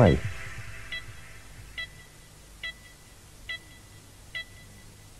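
An old home computer gives short electronic beeps at an even pace.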